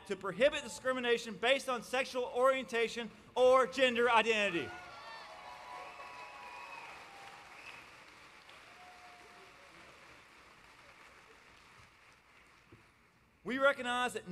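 A man speaks emphatically through a microphone in a large echoing hall.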